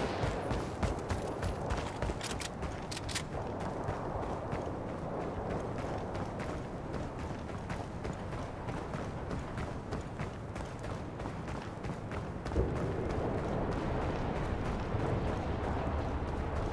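Footsteps thud quickly on a hard floor.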